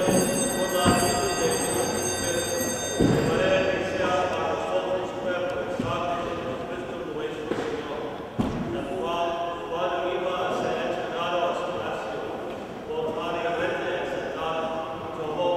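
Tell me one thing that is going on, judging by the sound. A man chants in a slow singing voice through a microphone in a large echoing hall.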